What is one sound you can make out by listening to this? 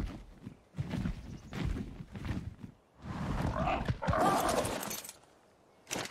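Large leathery wings flap with heavy whooshes.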